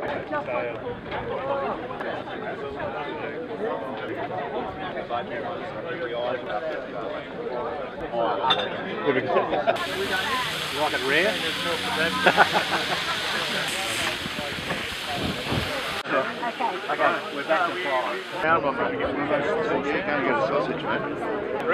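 A crowd of adults chatters outdoors.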